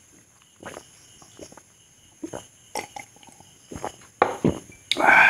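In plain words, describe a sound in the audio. A man gulps a drink loudly.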